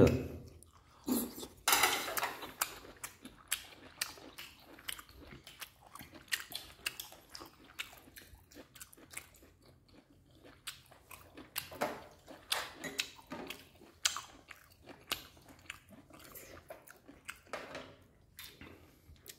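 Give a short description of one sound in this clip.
Chopsticks click against bowls and plates.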